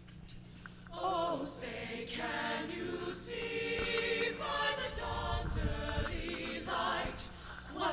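A choir of young men and women sings together in a large echoing hall.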